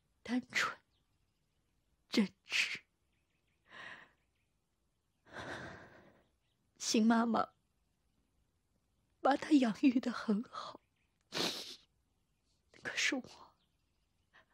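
A middle-aged woman speaks tearfully in short, broken phrases.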